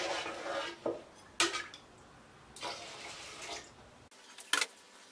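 Water pours from a jug into a pot.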